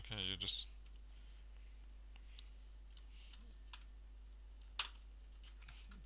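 Small tools click and tap against a laptop's parts.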